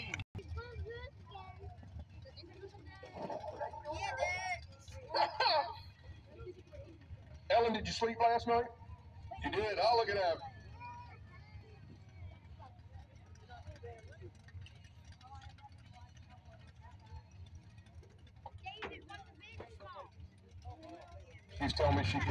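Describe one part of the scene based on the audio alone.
Spectators nearby talk and call out with animation.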